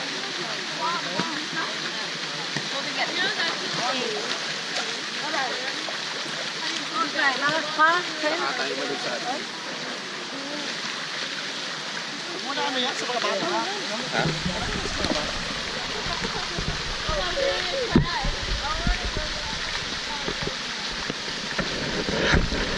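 Water splashes as people wade through a shallow pool.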